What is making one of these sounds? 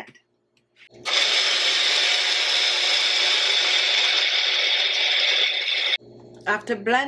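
A blender whirs loudly.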